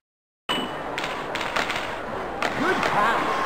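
A hockey stick strikes a puck with sharp clacks.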